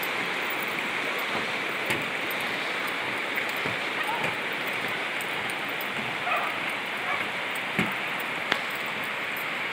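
Steady rain patters and hisses outdoors.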